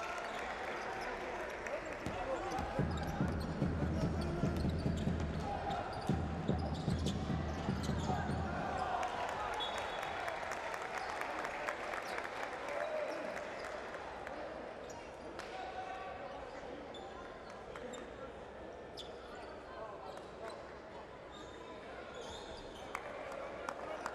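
A crowd cheers and chants loudly in a large echoing arena.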